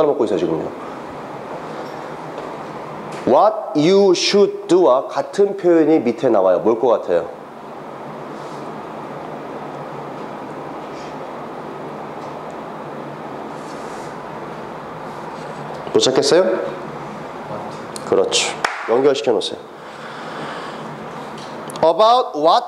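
A man speaks into a clip-on microphone in short bursts, with pauses.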